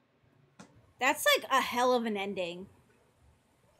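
A young woman cries out loudly and with feeling, close to a microphone.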